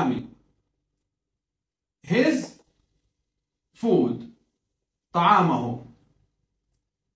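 A middle-aged man speaks slowly and clearly in short phrases, close by.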